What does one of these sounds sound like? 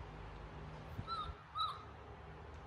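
A baby monkey gives short, high squeaks.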